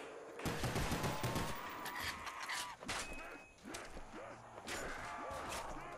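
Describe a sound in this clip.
Pistol shots crack in quick succession.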